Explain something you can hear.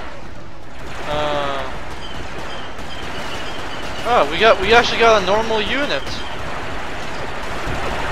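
Laser blasters fire in short bursts.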